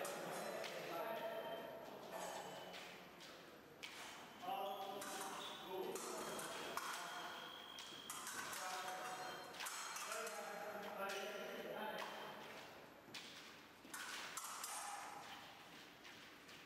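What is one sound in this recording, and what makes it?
Fencing blades clash and scrape.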